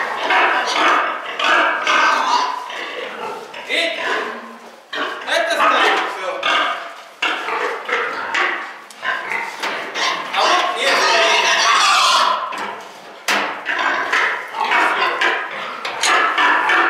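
Pigs squeal and grunt loudly.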